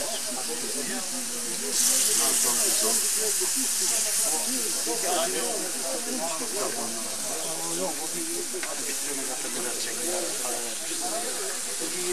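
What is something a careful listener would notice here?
Several people talk and chatter close by outdoors.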